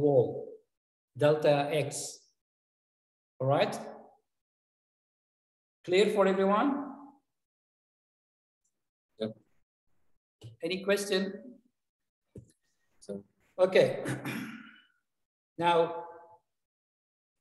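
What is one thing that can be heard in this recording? An elderly man lectures calmly through a microphone in an online call, with pauses.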